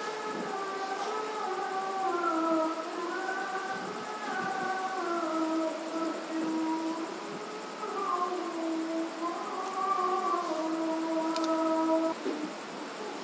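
An elderly man chants slowly in a drawn-out melodic voice through a microphone.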